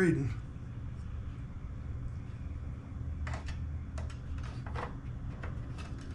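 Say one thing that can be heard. Small metal parts clink as a man handles a tool.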